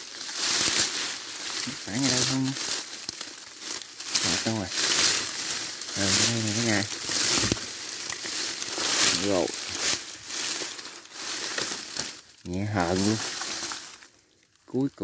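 Dry grass and leaves rustle close by.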